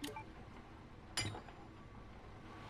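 A metal gear clicks into place.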